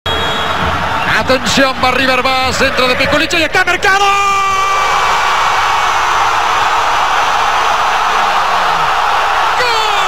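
A large stadium crowd roars, swelling into loud cheering.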